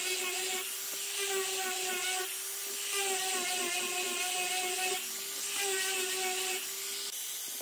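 An electric grinder's sanding disc rasps against wood.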